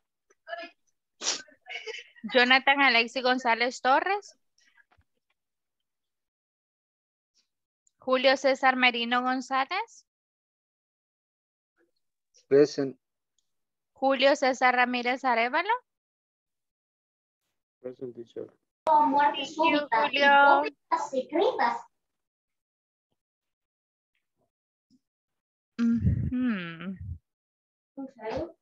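A young woman speaks clearly over an online call, in short phrases with pauses.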